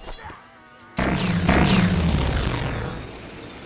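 Electricity crackles and booms loudly.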